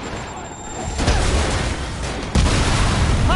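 A loud explosion booms and debris crashes down.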